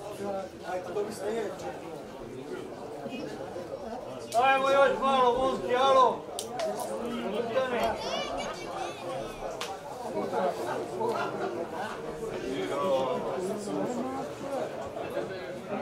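A crowd of spectators chats nearby outdoors.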